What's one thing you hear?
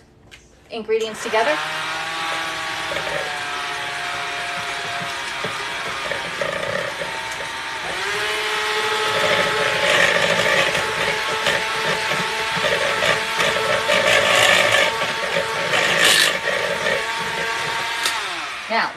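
An electric hand blender whirs steadily, its pitch shifting as it works through a mixture.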